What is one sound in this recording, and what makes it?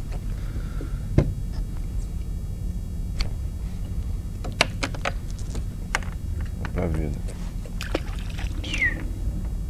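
Small plastic clicks and knocks come from handling gear.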